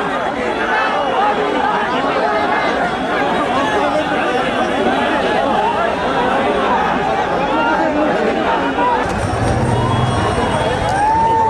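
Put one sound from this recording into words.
A large crowd of men shouts and cheers loudly outdoors.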